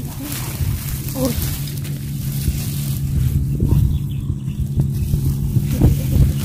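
Dry straw rustles and crackles as it is pulled apart by hand.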